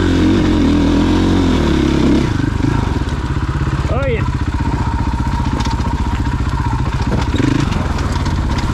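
A dirt bike engine revs loudly close by.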